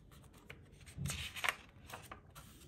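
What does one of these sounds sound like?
A book page is turned with a papery rustle.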